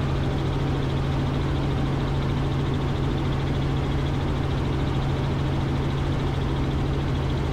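A helicopter engine hums loudly and steadily as its rotor thumps overhead.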